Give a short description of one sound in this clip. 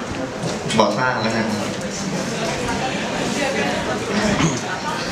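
A group of young men and women sing together nearby.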